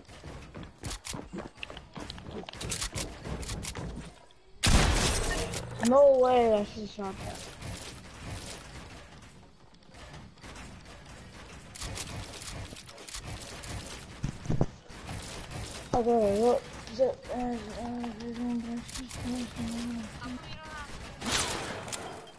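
Quick clicks and thuds of building pieces snap into place in a video game.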